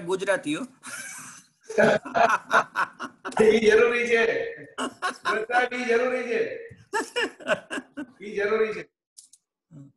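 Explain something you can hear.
Several men laugh over an online call.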